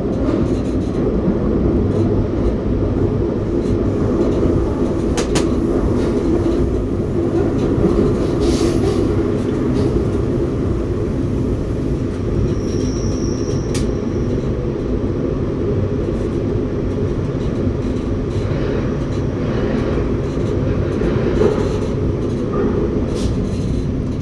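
A train rumbles steadily along tracks through an echoing tunnel.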